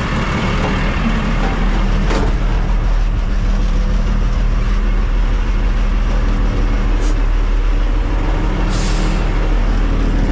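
A diesel engine idles with a steady low rumble.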